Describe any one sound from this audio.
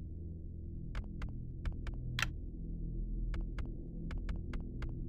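Short, crisp menu clicks tick now and then.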